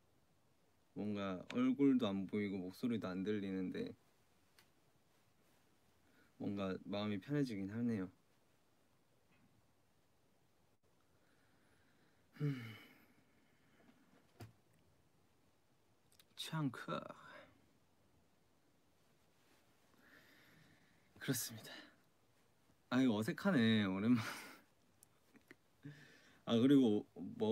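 A young man speaks calmly and close, pausing often.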